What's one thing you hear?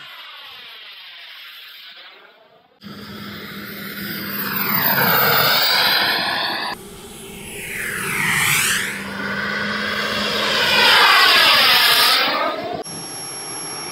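A model jet's turbine engine whines loudly as it flies past, rising and falling in pitch.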